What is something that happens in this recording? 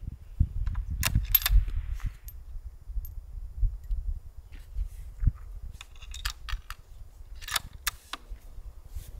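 A rifle bolt clacks as it is worked open and shut.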